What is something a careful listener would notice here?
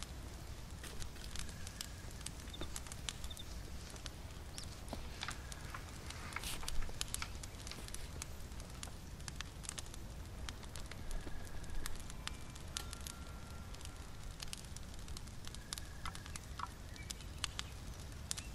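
A fire crackles and pops softly.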